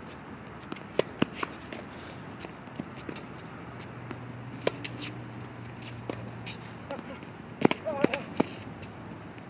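A tennis ball is struck with a racket again and again.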